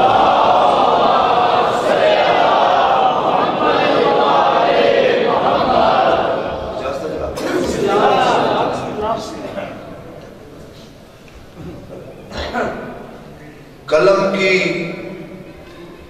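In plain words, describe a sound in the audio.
A man speaks with passion into a microphone, heard through loudspeakers in an echoing hall.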